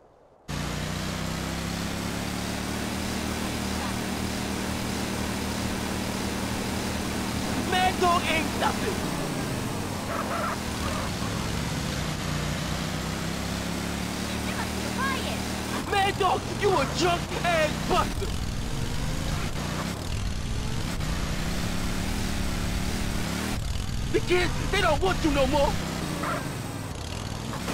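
A small kart engine buzzes steadily, rising and falling in pitch.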